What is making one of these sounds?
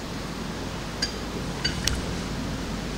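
A glass is set down on a table with a light knock.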